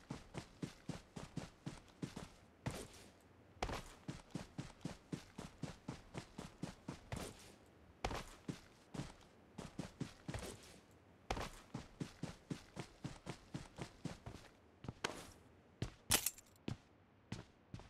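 Footsteps thud quickly over grass and floor.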